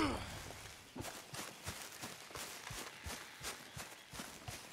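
Footsteps crunch on leaves in the woods.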